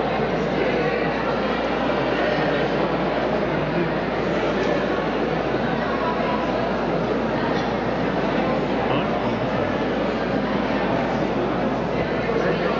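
A crowd murmurs quietly outdoors.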